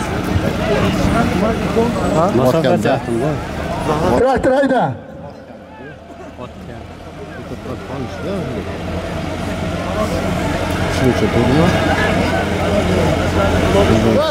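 A large outdoor crowd of men shouts and chatters at a distance.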